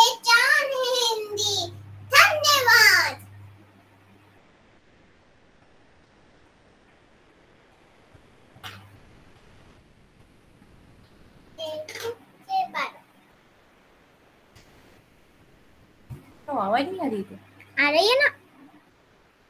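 A young child recites with animation over an online call.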